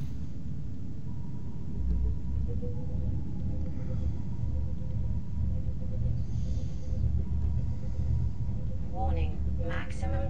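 A small underwater craft hums with a low, steady rumble.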